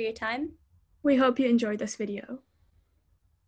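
A second young woman speaks briefly over an online call.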